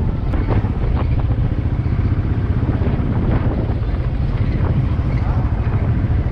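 Wind rumbles loudly and steadily across the microphone.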